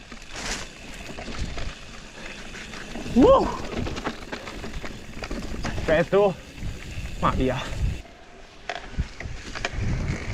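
Bicycle tyres crunch and roll over a dirt and stone trail.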